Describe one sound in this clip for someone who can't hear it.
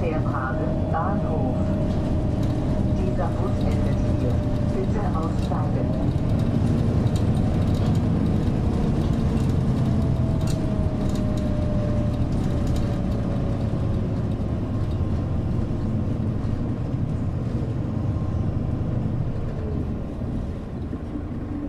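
A bus engine hums and rumbles steadily as the bus drives along.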